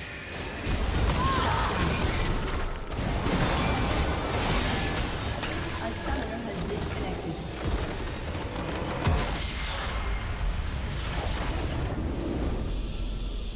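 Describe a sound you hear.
Game spell effects and explosions crash and whoosh in quick bursts.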